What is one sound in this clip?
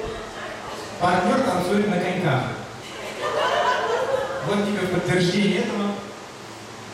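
A man speaks loudly through a microphone over loudspeakers.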